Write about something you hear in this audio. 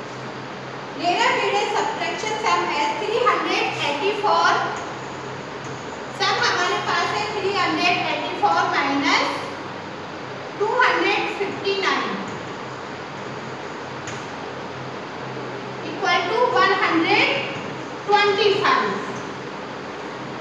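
A woman speaks clearly and calmly, as if teaching.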